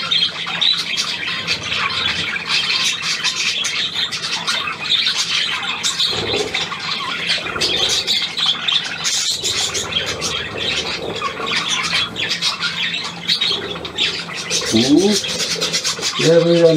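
Budgerigars chatter and warble.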